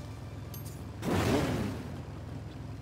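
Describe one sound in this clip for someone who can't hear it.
A fiery spell whooshes past with a burst of flame.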